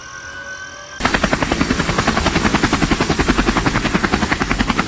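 Helicopter rotor blades thump loudly and rapidly.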